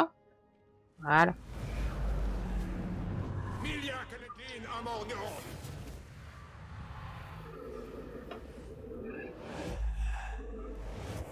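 Flames roar with a deep rumble.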